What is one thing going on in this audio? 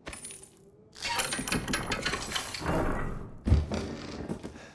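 Metal chains rattle and clink.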